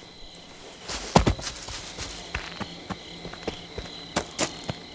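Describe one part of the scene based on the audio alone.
Footsteps crunch over leaves and ground outdoors.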